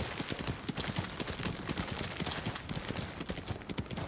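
Water splashes under a horse's hooves.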